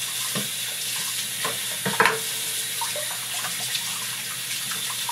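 Water runs steadily from a tap into a sink.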